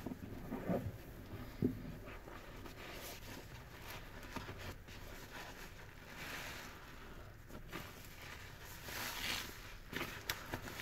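A sponge squelches and sloshes in soapy water.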